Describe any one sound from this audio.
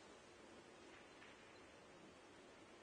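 A snooker ball is set down on the table with a soft click.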